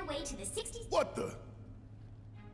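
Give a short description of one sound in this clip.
A man speaks in a deep, gruff voice.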